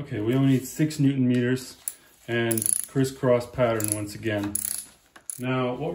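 A ratchet wrench clicks as it turns a bolt.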